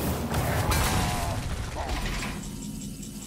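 A magical spell effect bursts with a loud whoosh and rumble.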